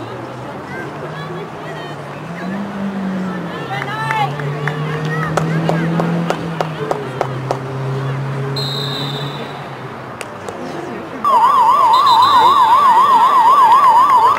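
Hockey sticks strike a ball with sharp clacks.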